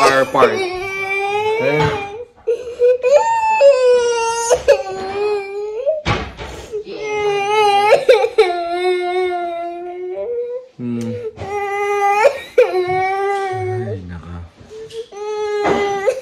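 A young girl cries and wails loudly up close.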